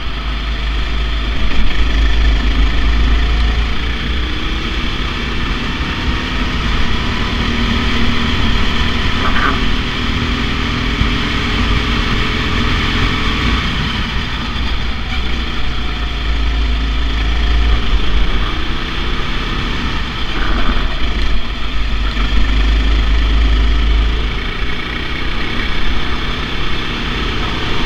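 A kart engine buzzes loudly up close, rising and falling in pitch as the kart speeds up and slows for corners.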